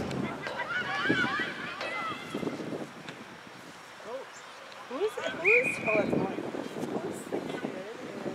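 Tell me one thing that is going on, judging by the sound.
A crowd of young players and spectators shouts and cheers outdoors across an open field.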